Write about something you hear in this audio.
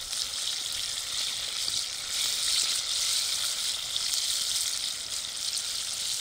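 A wooden spatula scrapes against a pan.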